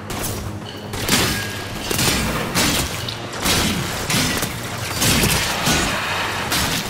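A blade whooshes and slashes repeatedly in quick strikes.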